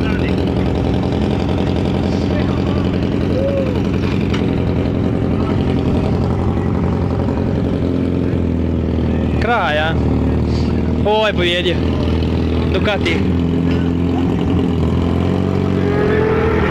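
Several motorcycle engines idle loudly nearby.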